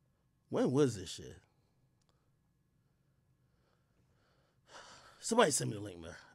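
A man talks animatedly into a microphone in short bursts.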